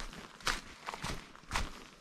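Leafy branches rustle and brush past.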